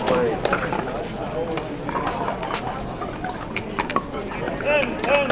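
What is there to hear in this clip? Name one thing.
Paddles hit a plastic ball with sharp pops outdoors.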